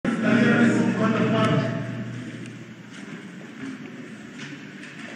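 A man speaks steadily into a microphone, heard over loudspeakers in a large echoing hall.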